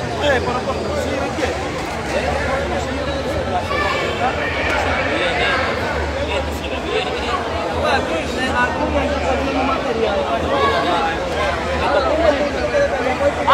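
A crowd of men and women chatters in a large echoing hall.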